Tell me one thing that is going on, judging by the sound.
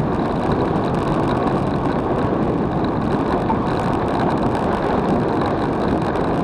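Wind roars and buffets across a microphone while riding fast downhill on an open road.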